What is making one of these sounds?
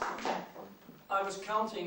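A piano begins to play.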